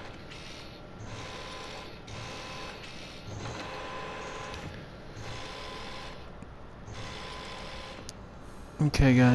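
A robotic arm whirs and hums as it moves in short bursts.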